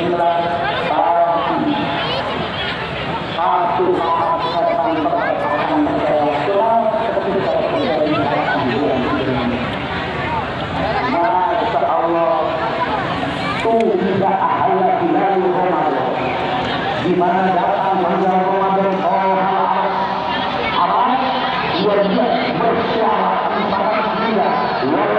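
A crowd of men and women chatter all around, close by.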